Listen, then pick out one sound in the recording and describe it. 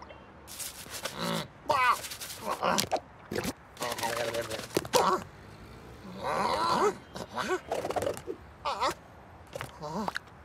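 Cartoon rabbits babble and squeal in high, silly voices.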